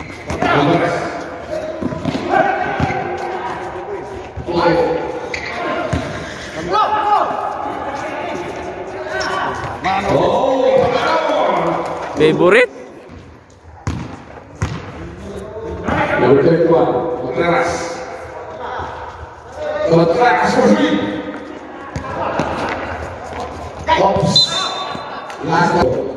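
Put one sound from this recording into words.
Young men shout and call out to each other across an echoing court.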